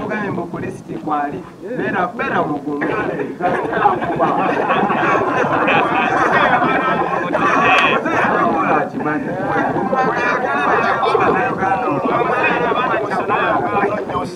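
A man talks loudly and with animation close by, outdoors.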